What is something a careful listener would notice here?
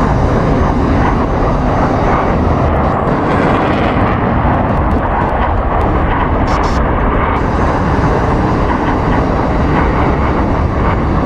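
A jet engine roars loudly and steadily as a plane takes off.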